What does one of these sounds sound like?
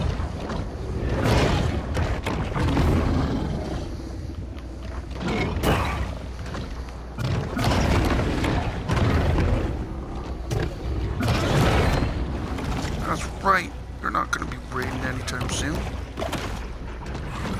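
A large creature thrashes and bites with heavy crunching impacts.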